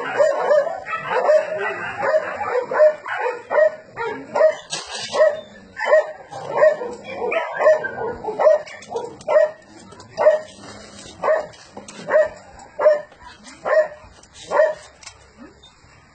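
A dog barks in short, regular yelps.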